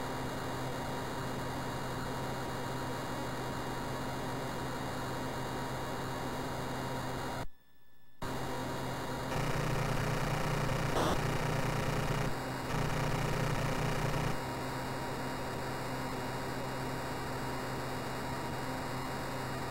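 A game jet engine drones steadily.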